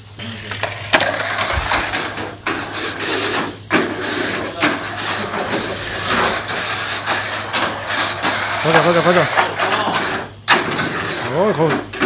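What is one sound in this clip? Hard plastic parts click and rattle as a small toy car is handled.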